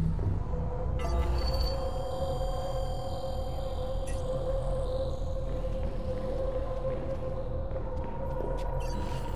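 Machines hum steadily.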